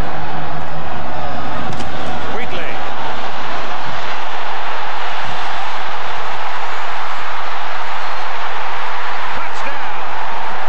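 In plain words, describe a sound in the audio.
A large stadium crowd roars loudly.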